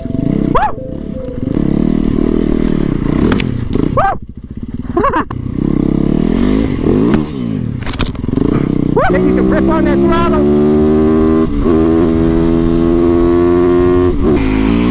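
A motorcycle engine revs hard and roars as it accelerates, rising and falling in pitch.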